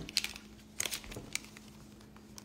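Playing cards click and shuffle in a young woman's hands.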